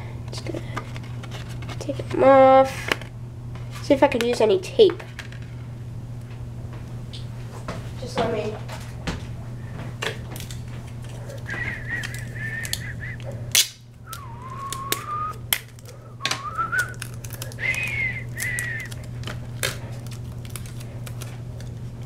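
Paper rustles and crinkles as hands handle a sheet.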